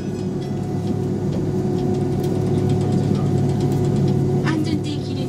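Jet engines hum loudly and steadily inside an airplane cabin.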